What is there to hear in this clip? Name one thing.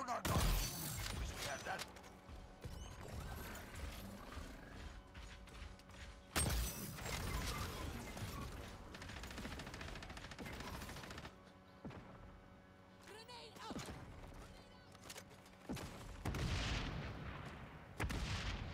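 Rifle shots crack loudly, one at a time.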